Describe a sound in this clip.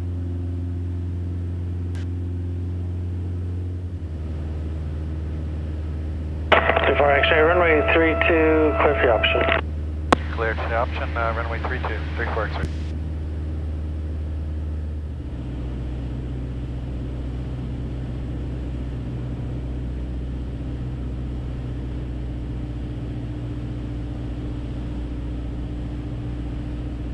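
An airplane engine drones steadily inside a small cockpit, shifting its pitch now and then.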